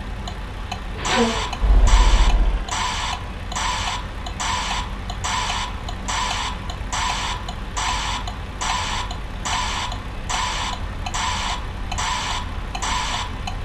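A reversing alarm beeps in a steady, repeating rhythm.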